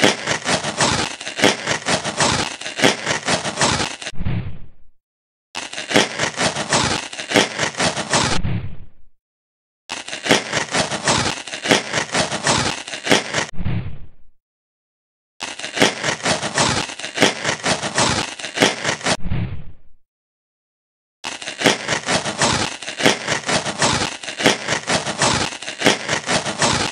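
A blade scrapes in quick rasping strokes, stopping now and then.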